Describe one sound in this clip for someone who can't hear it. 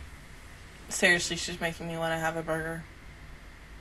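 A young woman speaks close into a microphone.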